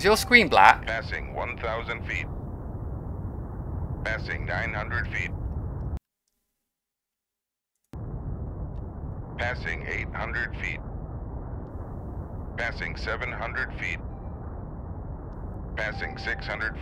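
A submarine's engine rumbles low and steady underwater.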